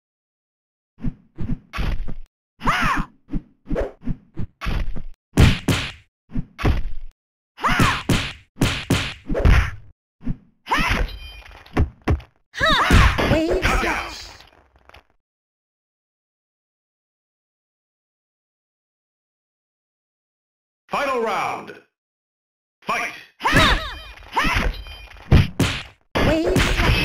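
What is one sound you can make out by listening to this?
Sword strikes and blows land in quick bursts.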